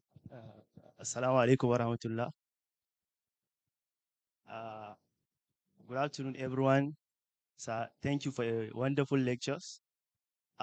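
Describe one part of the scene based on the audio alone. A young man speaks calmly through a microphone and loudspeakers.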